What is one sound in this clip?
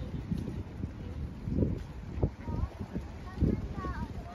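Small waves lap gently against rocks.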